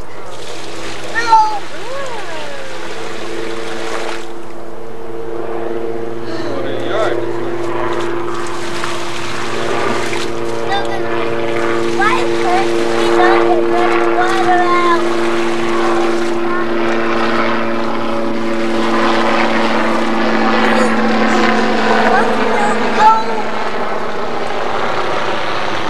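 Young children chatter and squeal close by, outdoors.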